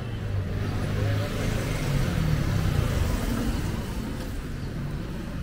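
A motorbike engine hums as it passes close by.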